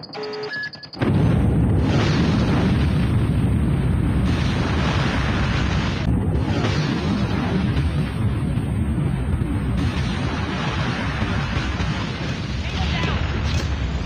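A huge explosion roars and rumbles on for several seconds, deep and heavy.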